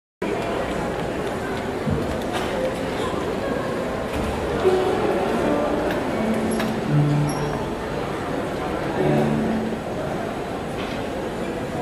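A large choir sings together in an echoing hall.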